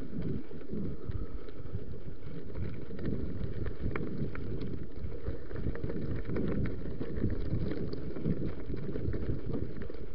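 Bicycle tyres roll and bump over a dirt trail.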